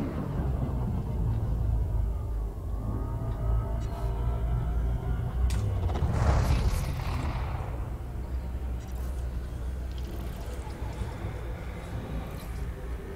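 A deep spaceship engine hum drones steadily.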